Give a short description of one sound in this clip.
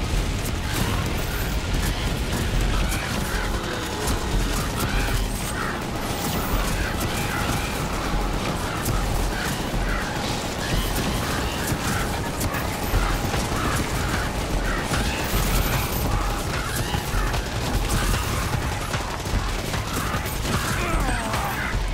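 Monsters growl and shriek.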